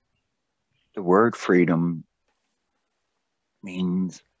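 An elderly man speaks over an online call.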